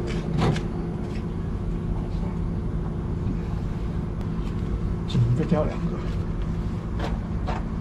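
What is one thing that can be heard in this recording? Damp clothes rustle and thump as they are pulled out of a washing machine drum.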